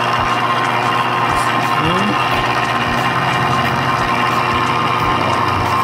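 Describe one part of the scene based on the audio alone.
A bench grinder whirs steadily.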